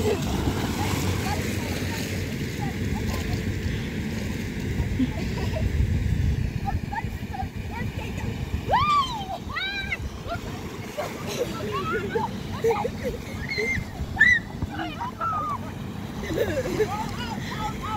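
Water splashes and rushes along an inflatable slide.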